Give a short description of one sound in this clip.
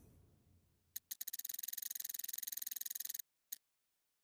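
Soft interface clicks tick rapidly.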